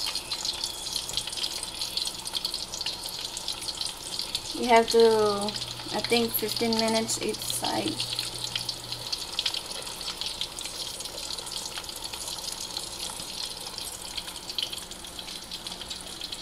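Fish sizzles and crackles as it fries in hot oil.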